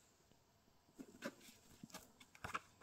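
Book pages rustle and flutter as they are leafed through.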